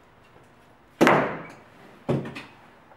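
A box thuds down onto a table.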